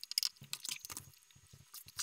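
Fingers tap on laptop keys.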